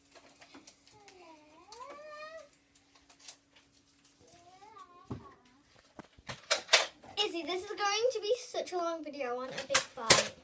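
A young girl speaks and squeals playfully nearby.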